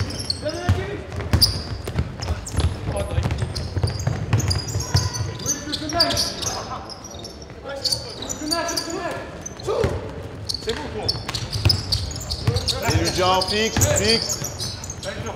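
Young men call out to each other across an echoing gym.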